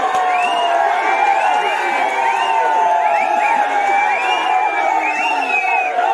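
Men cheer and chant with raised voices.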